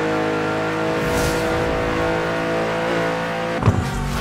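A car's boost whooshes loudly.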